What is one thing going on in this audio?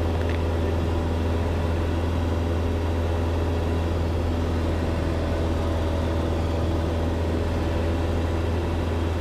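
A small plane's engine drones steadily from inside the cabin.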